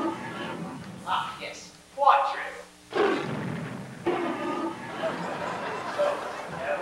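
A man speaks in a high, comic character voice.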